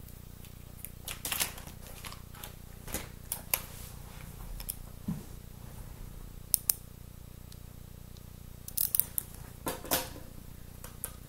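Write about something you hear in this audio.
A young woman breathes slowly and deeply, close to a microphone.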